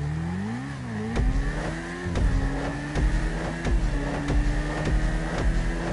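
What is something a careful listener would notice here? A motorcycle accelerates away with a rising engine roar.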